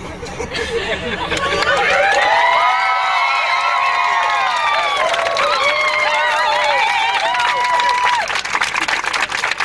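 A large crowd outdoors cheers and screams with excitement.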